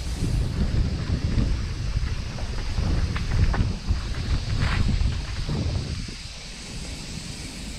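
Bicycle tyres rattle and crunch over a bumpy dirt trail.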